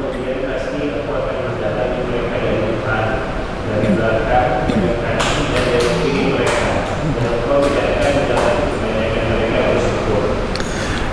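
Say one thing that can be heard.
An elderly man speaks calmly into a microphone, heard through a loudspeaker in an echoing room.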